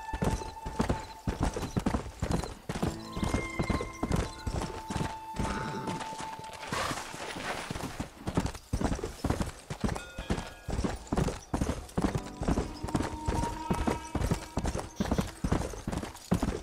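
A horse gallops, its hooves pounding on a dirt trail.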